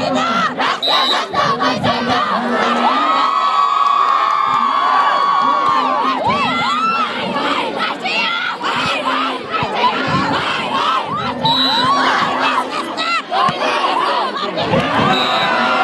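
A large outdoor crowd cheers, whistles and shouts loudly.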